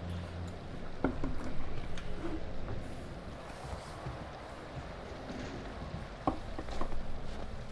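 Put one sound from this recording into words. Footsteps crunch slowly on a rough floor.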